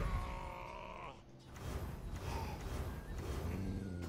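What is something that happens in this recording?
Cards flip over with magical whooshes.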